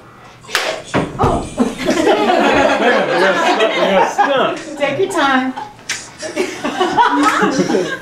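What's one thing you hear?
A group of men and women chatter and laugh nearby.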